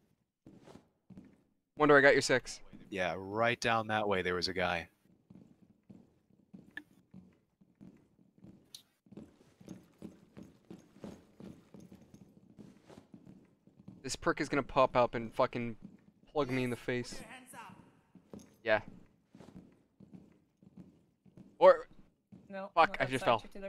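Boots step steadily on a hard floor.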